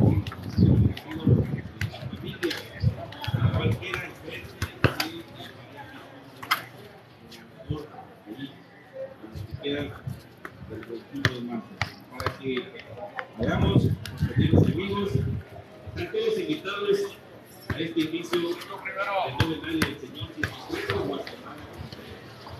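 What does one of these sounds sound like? A man talks close to the microphone.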